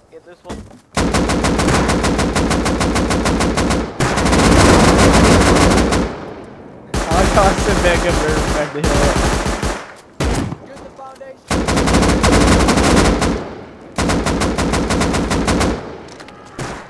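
An automatic rifle fires in long, rapid bursts close by.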